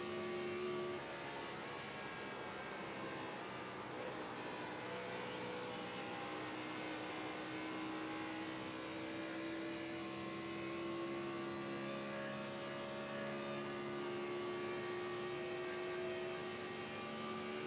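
A race car engine roars steadily at high speed, its pitch shifting slightly.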